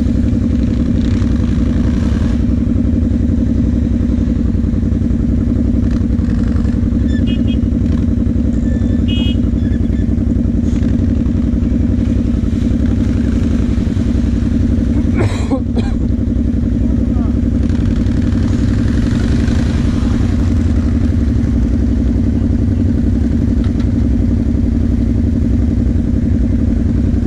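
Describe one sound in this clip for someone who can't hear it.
Other quad bike engines rev nearby.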